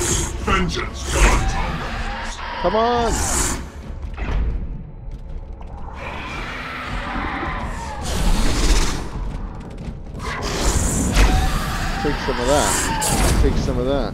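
A chainsaw blade whirs as it swings.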